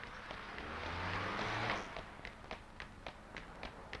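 Footsteps patter on pavement as a boy runs.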